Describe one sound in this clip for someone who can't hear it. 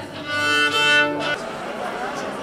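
A violin plays sustained notes up close.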